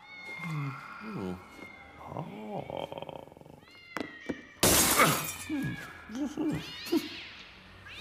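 A man hums and mutters to himself in a playful, cartoonish way.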